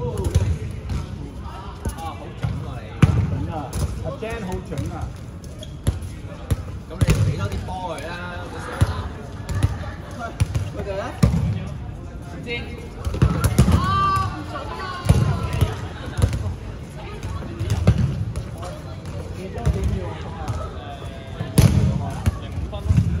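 A ball thumps on a hard floor.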